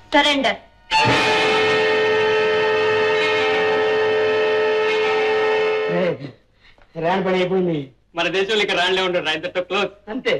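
A young man sings loudly.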